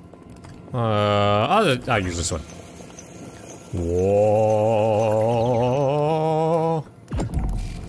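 A young man sings out long, wavering notes close to a microphone.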